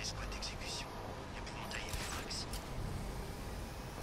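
A grappling line shoots out and zips taut.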